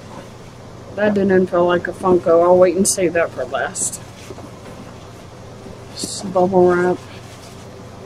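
A woman talks calmly and close by, in short bursts.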